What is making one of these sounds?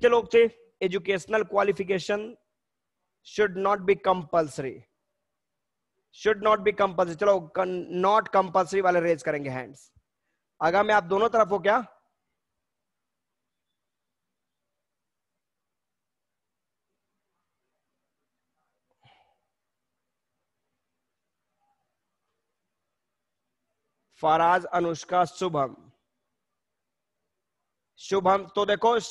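A man speaks with animation into a close headset microphone, heard as if over an online call, with long pauses.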